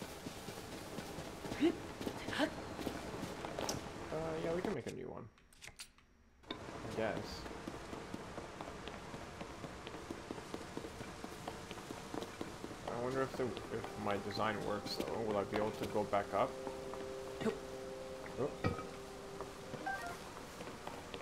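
Footsteps patter quickly over grass and stone.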